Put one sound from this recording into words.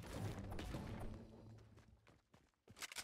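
A pickaxe strikes a wall with a heavy thud.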